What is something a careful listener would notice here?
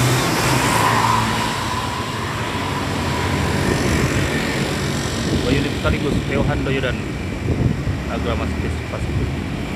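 Traffic rumbles steadily along a street outdoors.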